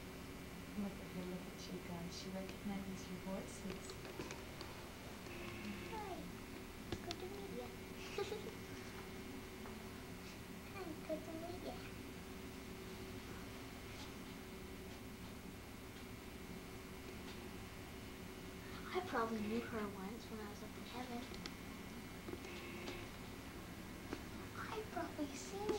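A woman speaks softly and warmly close by.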